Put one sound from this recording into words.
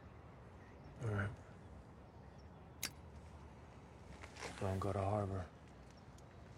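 A man speaks briefly close by.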